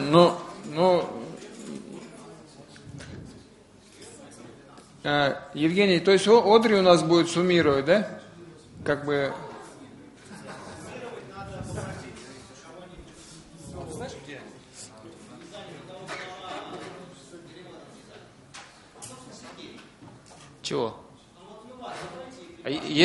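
A man speaks through a microphone in a large room with an echo.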